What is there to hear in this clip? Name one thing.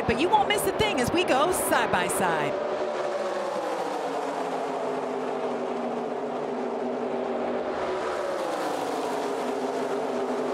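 Racing trucks whoosh past, their engine pitch dropping as they go by.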